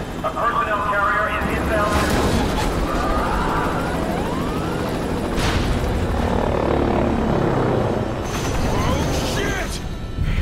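A helicopter's rotor roars and thumps loudly.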